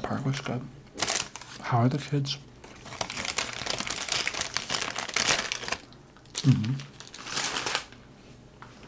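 A paper wrapper crinkles and rustles in a man's hands.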